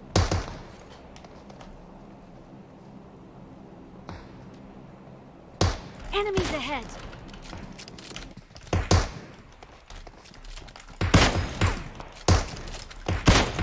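Gunshots crack sharply again and again, with short echoes.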